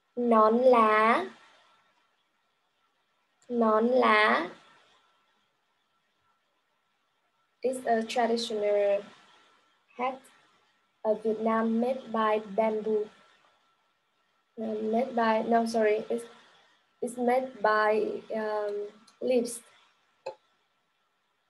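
A young woman speaks clearly and slowly into a nearby microphone, pausing between phrases.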